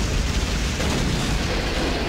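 An explosion booms and crackles.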